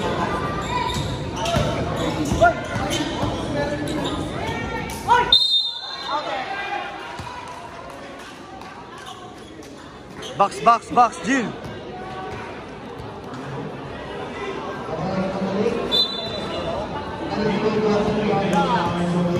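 A large crowd cheers and shouts in an echoing gym.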